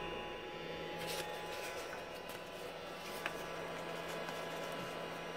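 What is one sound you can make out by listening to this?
A sanding belt rustles and flaps as it is handled.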